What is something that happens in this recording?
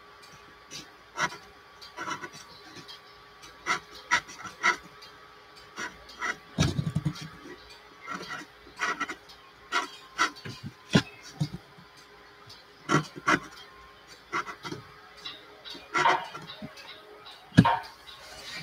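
A pencil taps and scratches on paper.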